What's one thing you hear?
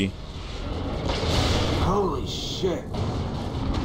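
An explosion booms and rumbles nearby.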